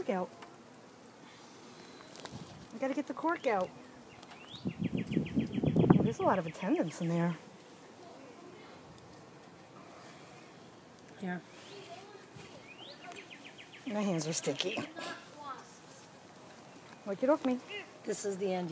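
Wooden hive parts knock and clatter.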